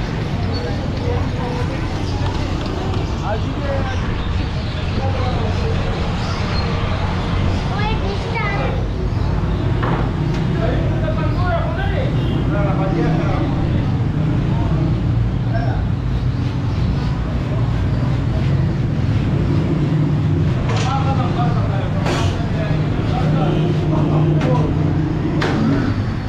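A metal pot scrapes and clanks.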